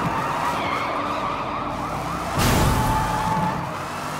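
Tyres screech on wet asphalt.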